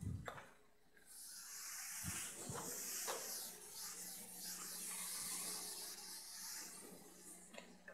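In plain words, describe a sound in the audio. A felt eraser swishes across a chalkboard.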